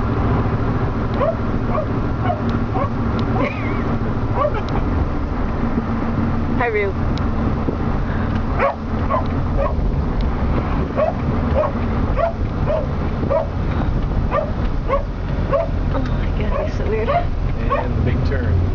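A car engine idles with a low steady rumble.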